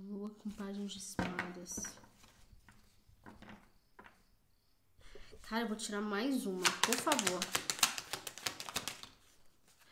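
Cardboard packaging rustles and crinkles in hands.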